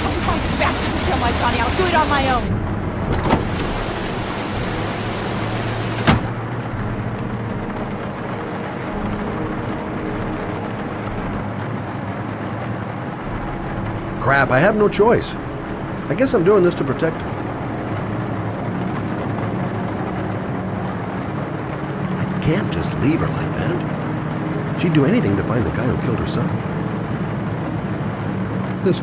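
Rain patters steadily on a car.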